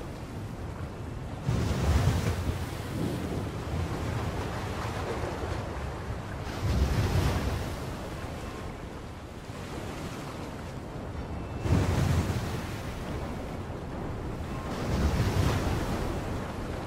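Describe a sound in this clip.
Wind blows strongly outdoors.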